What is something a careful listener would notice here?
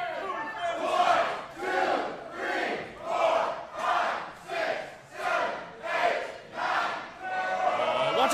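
A crowd chants together in a steady rhythm.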